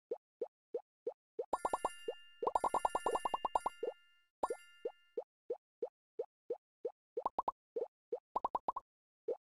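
Short cartoonish game blips pop in a steady rhythm, speeding up in quick bursts.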